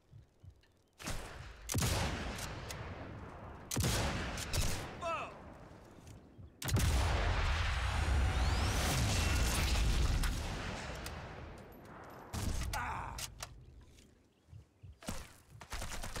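A rifle fires loud, sharp shots.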